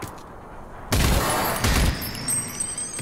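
A gun fires loud, booming shots.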